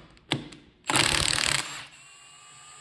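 A cordless impact wrench rattles loudly in a short burst.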